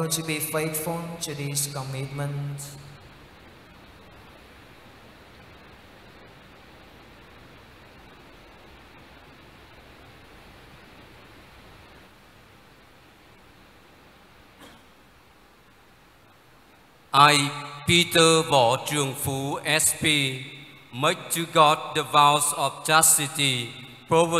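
A man chants slowly through a microphone.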